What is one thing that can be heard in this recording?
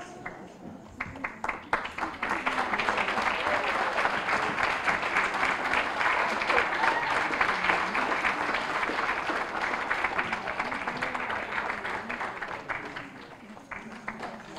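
An audience claps and applauds loudly in a large hall.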